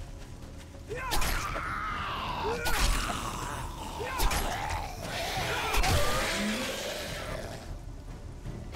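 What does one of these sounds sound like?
A creature growls and snarls up close.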